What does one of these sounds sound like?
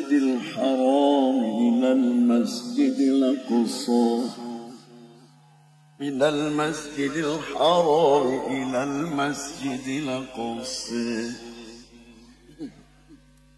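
An elderly man chants melodically into a microphone, heard through loudspeakers.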